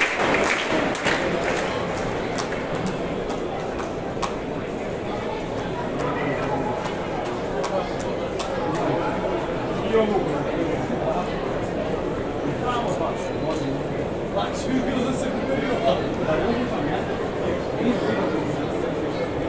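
Scattered whistles and claps ring out from a crowd.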